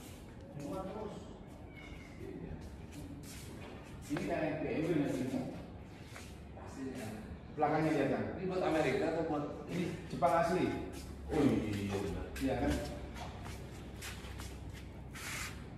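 Footsteps scuff on a concrete floor.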